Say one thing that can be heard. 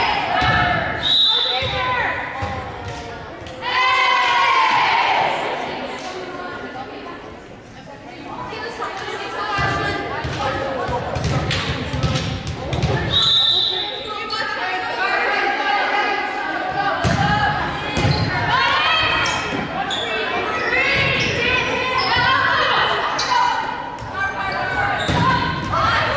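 Young women shout and call out to each other in a large echoing gym.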